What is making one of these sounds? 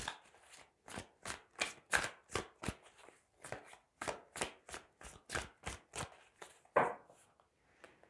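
Playing cards are shuffled with quick soft taps.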